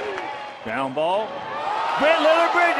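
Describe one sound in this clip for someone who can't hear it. A large crowd roars with excitement.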